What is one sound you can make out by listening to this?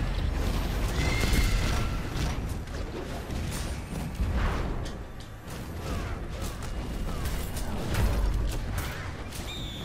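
Magic blasts and impacts crackle and boom in a video game.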